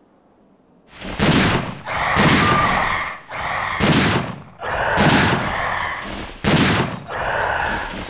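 A shotgun fires repeatedly.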